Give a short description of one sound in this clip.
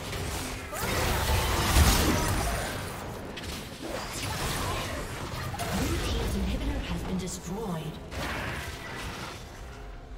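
Game spell effects crackle and burst.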